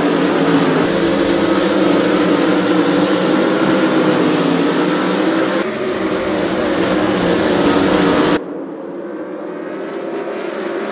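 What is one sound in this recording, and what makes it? Racing car engines roar loudly as the cars speed past.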